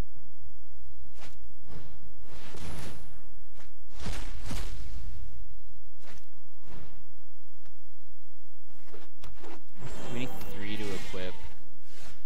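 Digital card game sound effects chime and whoosh as cards are played.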